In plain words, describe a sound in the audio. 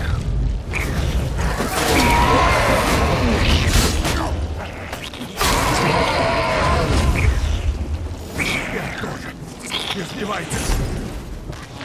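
Magical blasts crackle and whoosh in a fight.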